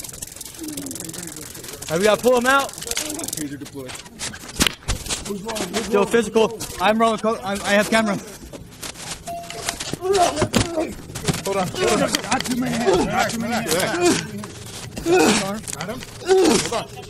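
Clothing rustles and thumps in a scuffle close by.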